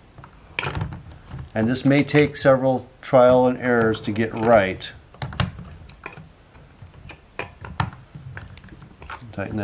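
A screwdriver clicks and scrapes against wood.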